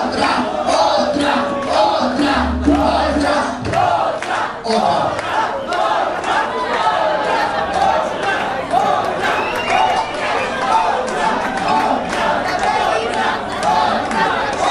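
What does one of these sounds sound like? A crowd chatters and cheers close by.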